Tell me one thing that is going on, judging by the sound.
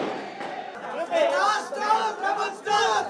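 A crowd of young men cheers and shouts excitedly.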